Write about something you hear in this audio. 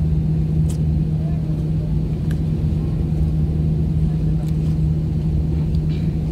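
An airplane engine hums steadily and loudly from inside the cabin.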